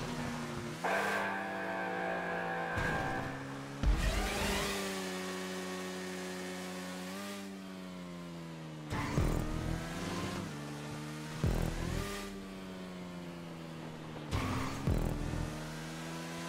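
A motorcycle engine revs loudly, its pitch rising and falling.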